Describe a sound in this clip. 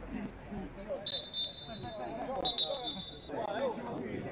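A referee's whistle blows two short, sharp blasts.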